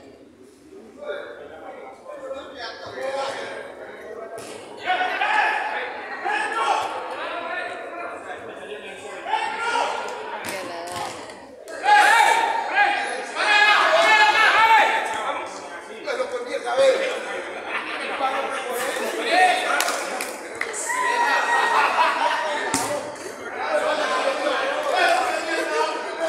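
Men shout and call out to each other, heard from nearby.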